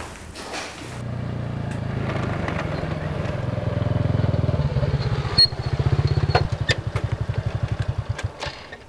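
A motorbike engine putters as it rides along.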